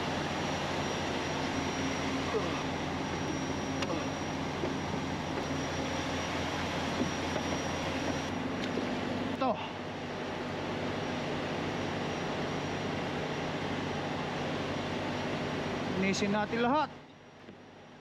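A truck engine idles steadily nearby.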